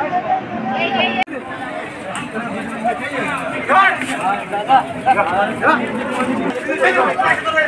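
A crowd of men talks and calls out loudly outdoors.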